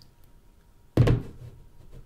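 A plastic tub knocks against a wooden table.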